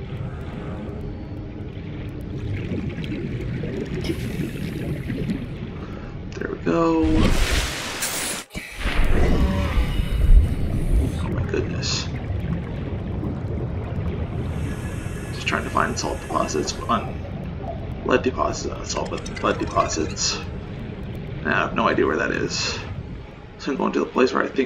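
A muffled underwater rumble of moving water goes on throughout.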